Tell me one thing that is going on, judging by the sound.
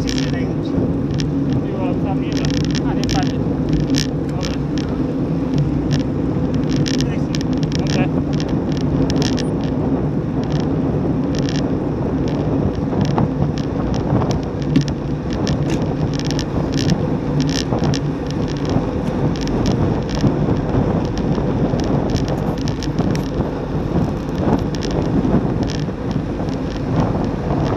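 Wind rushes loudly past while riding outdoors.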